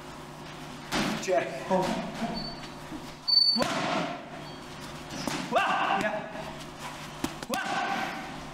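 Boxing gloves thud against punch pads.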